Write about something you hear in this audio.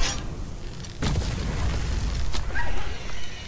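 A fiery blast booms with a deep rumble.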